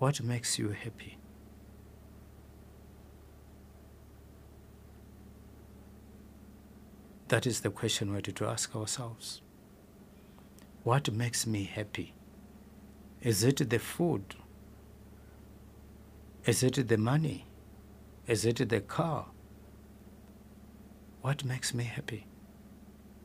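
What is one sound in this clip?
An adult man speaks slowly and calmly into a microphone, with long pauses between phrases.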